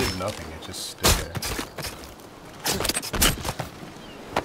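Heavy blows thud and crunch against a giant creature.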